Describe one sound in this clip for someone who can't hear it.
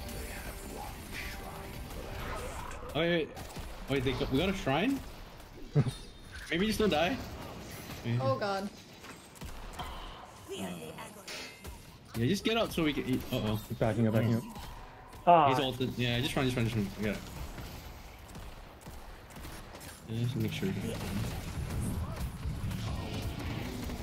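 Weapons fire and energy blasts crackle in a fast-paced fight.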